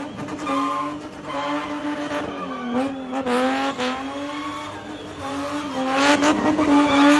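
A car engine roars at high revs, close by.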